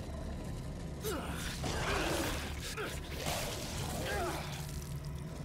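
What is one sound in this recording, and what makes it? A monster shrieks and snarls.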